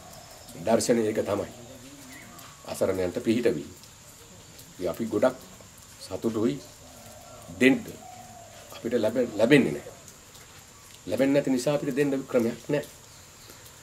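A middle-aged man speaks calmly close to a microphone, in short bursts with pauses.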